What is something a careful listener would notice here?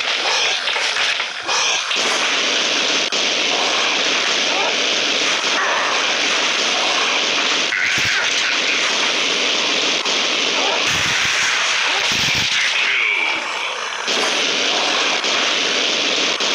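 A gun fires rapidly in long bursts.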